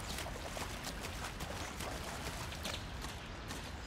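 Water splashes around wading feet.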